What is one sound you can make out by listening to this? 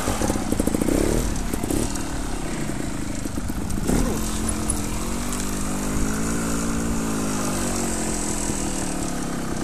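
Tyres crunch over dirt and twigs.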